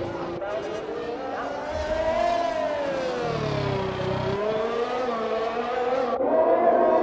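A racing car engine screams at high revs, its pitch sliding down and up again.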